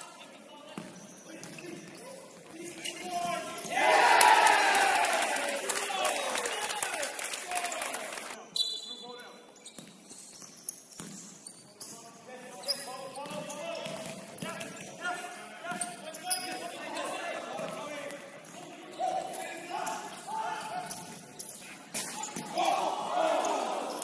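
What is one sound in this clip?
Sneakers squeak sharply on a hard court floor, in a large echoing hall.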